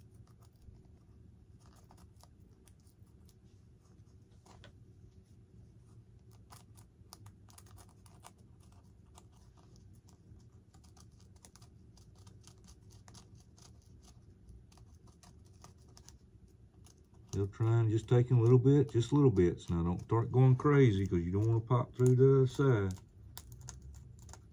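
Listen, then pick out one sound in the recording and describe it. Small tools click and tap against a plastic model.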